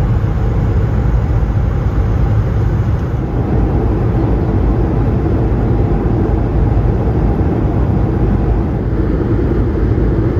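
A jet engine roars steadily with a deep, even rumble.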